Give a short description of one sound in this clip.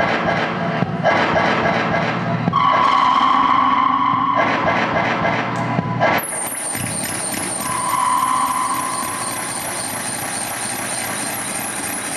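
Harsh electronic noise and tones play through loudspeakers, shifting abruptly.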